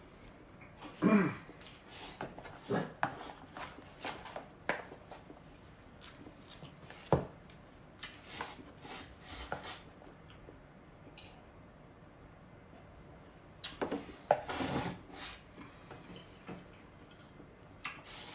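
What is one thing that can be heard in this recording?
A man slurps noodles loudly and quickly.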